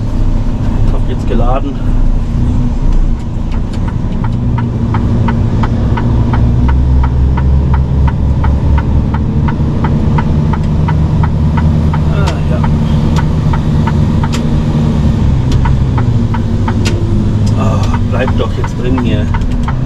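A truck's diesel engine rumbles steadily from inside the cab.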